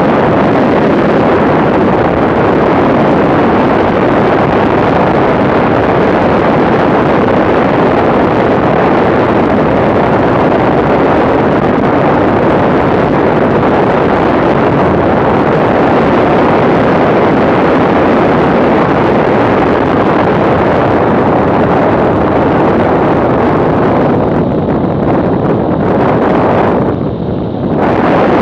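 Wind roars loudly and steadily past a moving motorcycle.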